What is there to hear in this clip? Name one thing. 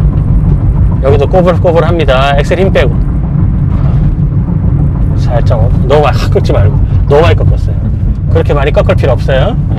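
A middle-aged man speaks calmly from close by inside the car.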